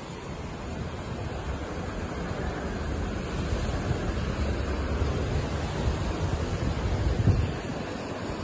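Traffic rumbles steadily on a road below.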